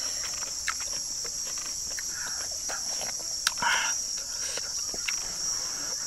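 A woman slurps and chews food close by.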